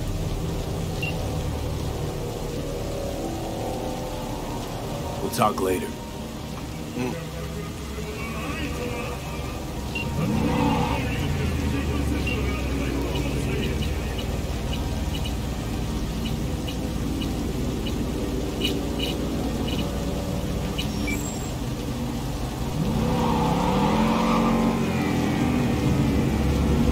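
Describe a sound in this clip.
A car engine hums steadily and revs up now and then.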